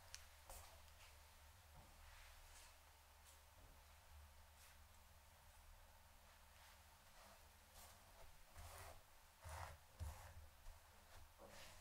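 Hands softly rustle and brush through braided hair close by.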